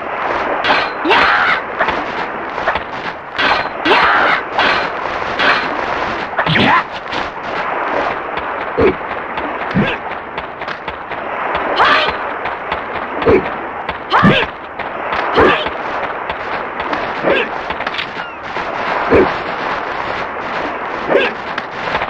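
Swords clash and swish in a video game sword fight.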